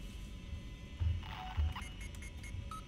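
A keypad beeps as buttons are pressed.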